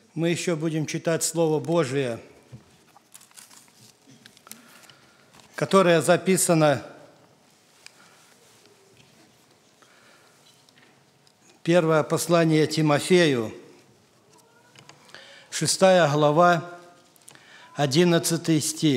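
A middle-aged man speaks calmly into a microphone, reading out in short phrases with pauses.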